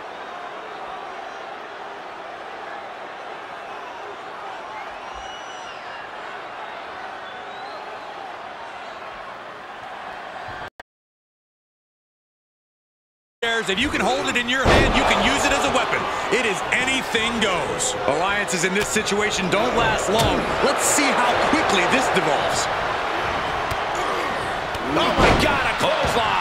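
A large crowd cheers and roars in a big stadium.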